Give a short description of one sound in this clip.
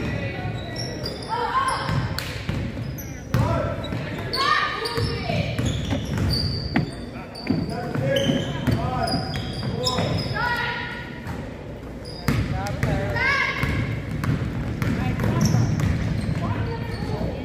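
Young girls call out to each other in a large echoing gym.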